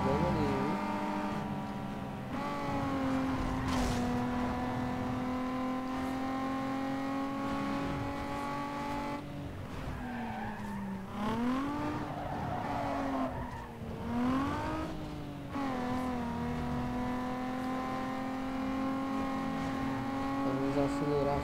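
A racing car engine roars at high revs, dropping and rising in pitch as the gears change.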